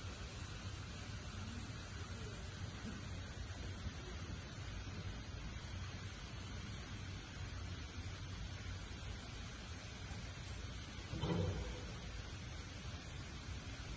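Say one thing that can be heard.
Dry straw rustles under a panda's paws.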